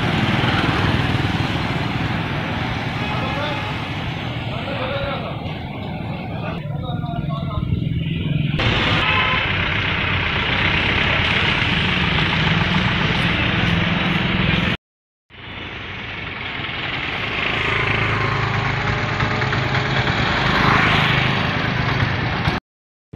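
Traffic rumbles steadily along a busy road outdoors.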